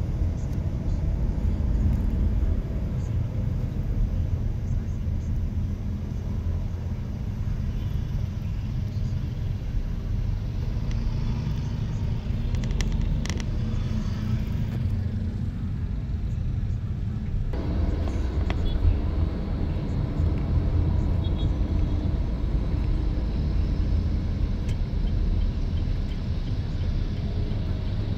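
A car's engine hums low and steady inside the car as it drives.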